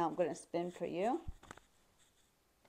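A middle-aged woman speaks clearly and with animation, close to a microphone.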